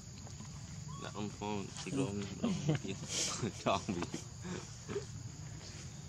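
A baby monkey squeals and whimpers close by.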